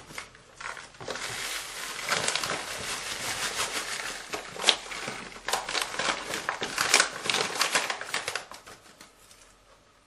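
Powder pours from a paper bag into a bowl with a soft, steady hiss.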